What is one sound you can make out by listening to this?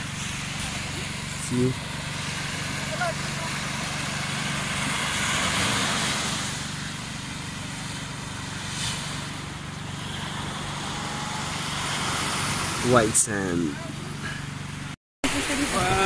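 Gentle waves wash onto a sandy shore.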